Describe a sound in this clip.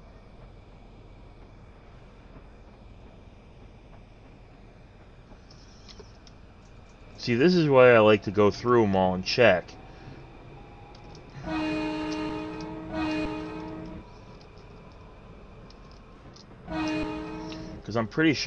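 A subway train rumbles along the tracks through a tunnel.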